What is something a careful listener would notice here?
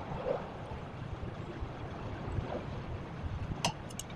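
Hands rustle and tug at copper wire windings.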